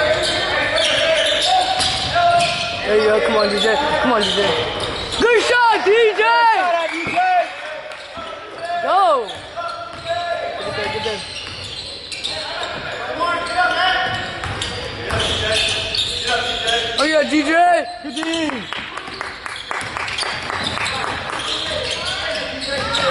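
A basketball bounces repeatedly on a wooden floor.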